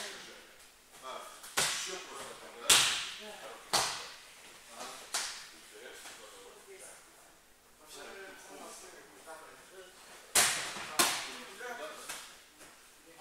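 A teenage boy talks calmly nearby in an echoing hall.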